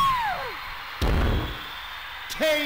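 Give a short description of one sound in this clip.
A body slams onto the floor.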